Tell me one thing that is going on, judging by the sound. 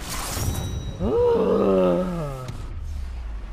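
A short triumphant game jingle plays.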